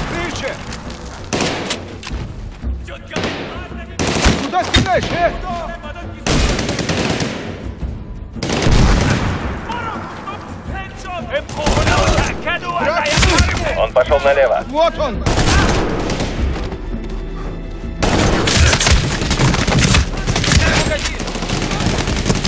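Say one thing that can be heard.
Rifles fire in rapid bursts, with loud cracks and booms.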